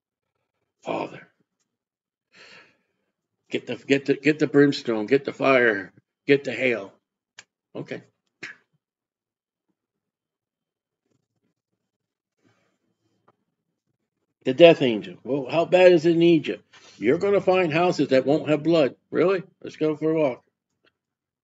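A middle-aged man speaks with animation into a close microphone, pausing between phrases.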